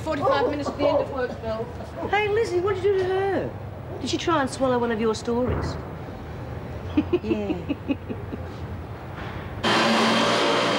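Several women talk with animation.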